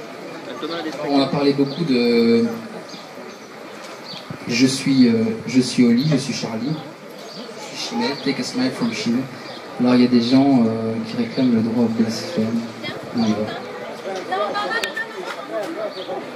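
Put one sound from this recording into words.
A young man speaks into a microphone, heard through loudspeakers.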